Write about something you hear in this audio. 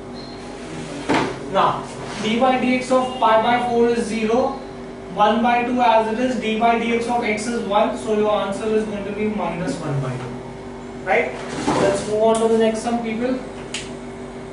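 A man speaks calmly, explaining, close by.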